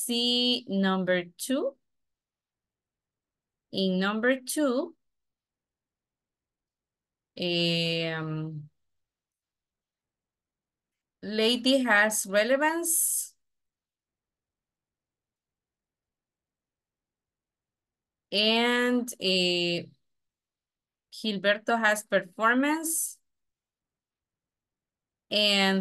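A woman speaks calmly in short phrases through an online call.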